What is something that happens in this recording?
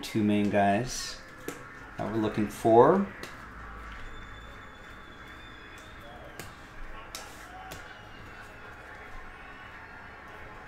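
Trading cards flick and rustle as they are shuffled by hand.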